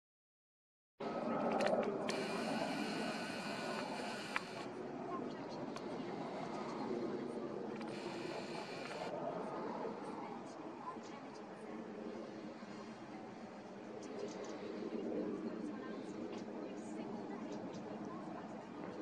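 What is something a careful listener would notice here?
A jet plane's engines roar steadily overhead.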